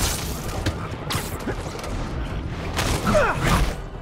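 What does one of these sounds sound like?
Heavy punches land with thuds during a fight.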